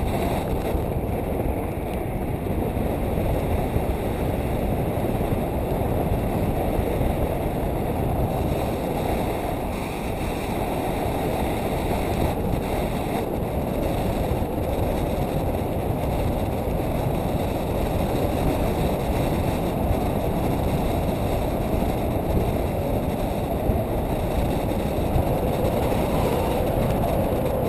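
Strong wind rushes loudly and steadily against a microphone.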